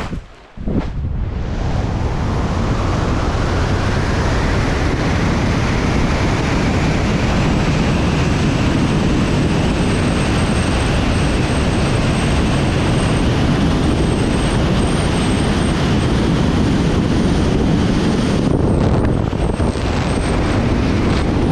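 Wind roars loudly and steadily past at high speed.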